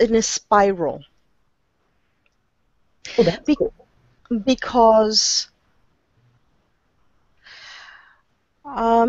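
A middle-aged woman speaks with animation over an online call, in short bursts with pauses.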